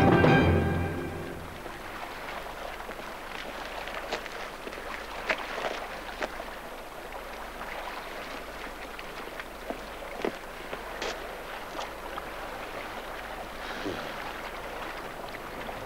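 A stream rushes and splashes over rocks.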